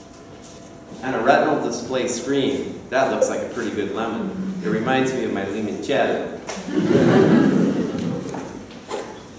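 A man speaks calmly to an audience.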